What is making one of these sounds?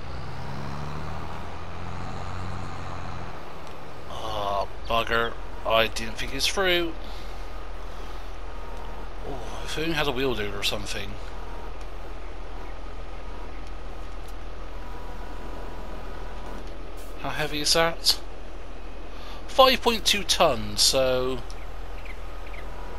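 A tractor engine hums and rumbles steadily.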